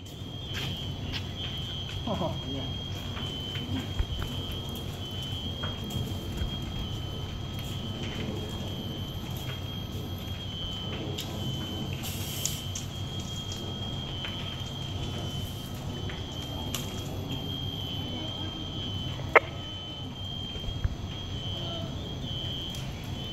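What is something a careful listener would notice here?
A fire roars and crackles inside a building.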